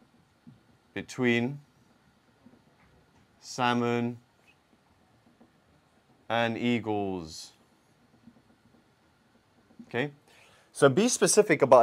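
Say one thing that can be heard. A man speaks calmly and slowly, close by, with pauses.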